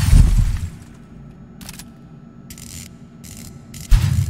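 Heavy metal footsteps clank.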